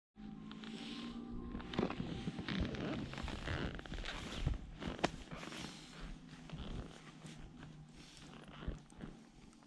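Skis swish and crunch through deep powder snow.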